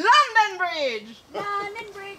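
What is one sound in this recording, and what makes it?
A young woman lets out a high, falling wail close by.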